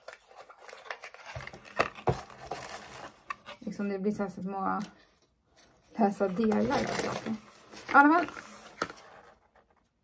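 Small objects rustle and clatter in hands.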